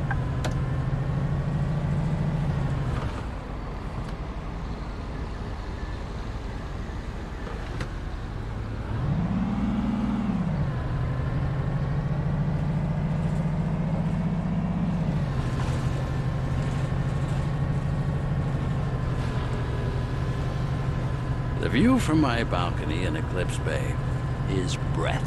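A bus engine hums steadily and rises and falls in pitch as it speeds up and slows down.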